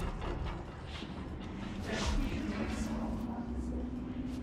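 Footsteps tap across a hard floor.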